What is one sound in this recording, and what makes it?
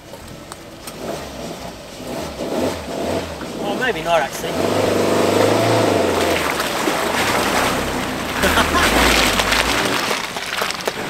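Tyres splash and squelch through muddy water.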